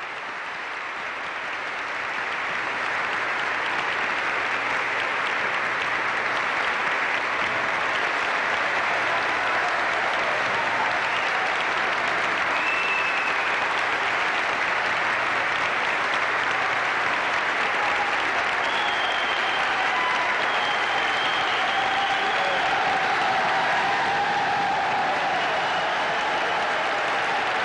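A large crowd applauds loudly in a large echoing hall.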